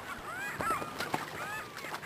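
A gull flaps its wings as it takes off.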